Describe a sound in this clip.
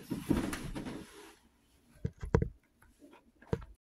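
A hand knocks and fumbles against a microphone.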